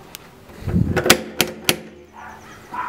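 A door knocker raps sharply against a door several times.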